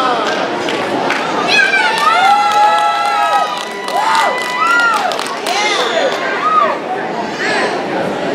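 A crowd of adults and children cheers and shouts loudly in a large echoing hall.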